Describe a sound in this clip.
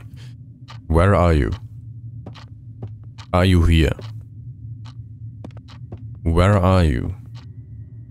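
A man speaks close to a microphone in short, drawn-out bursts.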